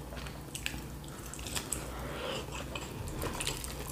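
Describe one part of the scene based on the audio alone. A woman chews food close to a microphone.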